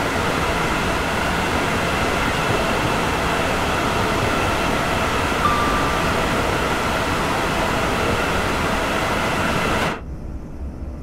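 A high-speed electric train roars past close by on the tracks.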